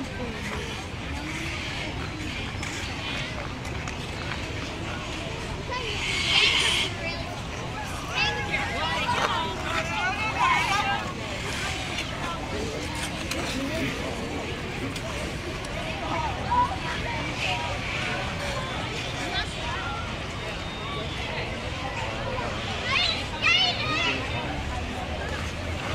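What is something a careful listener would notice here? A crowd of people chatters and calls out nearby, outdoors.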